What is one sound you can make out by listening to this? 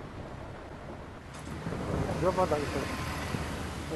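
Glass doors swing open.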